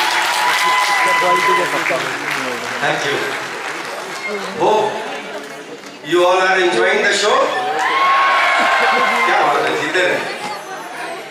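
A man sings through loudspeakers in a large hall.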